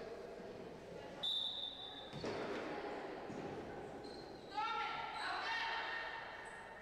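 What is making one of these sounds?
People talk quietly at a distance in a large echoing hall.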